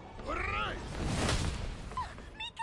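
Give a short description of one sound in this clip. A heavy body slams down with a loud thud.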